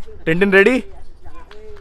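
A young boy shouts nearby.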